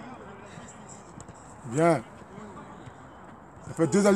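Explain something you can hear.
A football is kicked.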